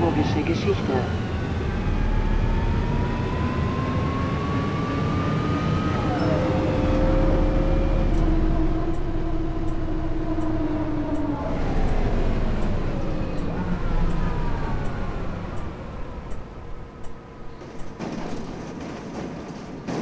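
A bus engine hums, rising and falling in pitch, and quietens near the end.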